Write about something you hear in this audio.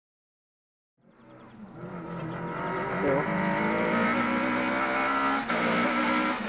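A rally car's engine roars louder as the car speeds closer.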